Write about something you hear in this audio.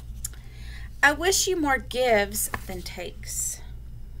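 A woman reads aloud in an animated voice, close to a computer microphone.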